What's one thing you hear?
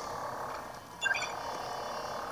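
A short bright chime rings out from a video game.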